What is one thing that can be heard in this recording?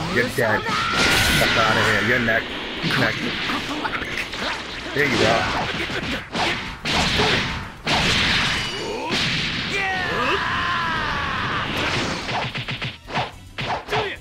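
Heavy punches land with sharp thuds.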